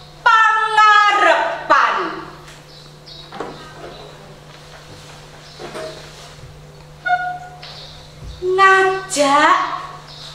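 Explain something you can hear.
A woman speaks expressively close by, in a performing voice, with rising and falling pitch.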